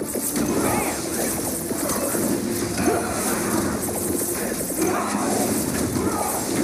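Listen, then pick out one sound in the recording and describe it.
Upbeat game music plays steadily.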